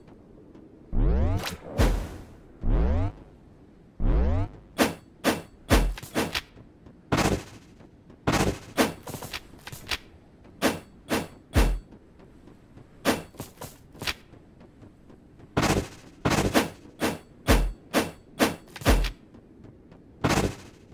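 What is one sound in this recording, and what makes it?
Rock breaks apart with heavy thuds.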